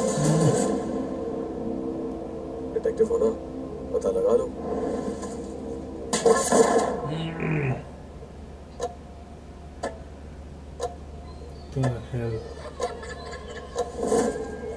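Tense film music plays through a loudspeaker.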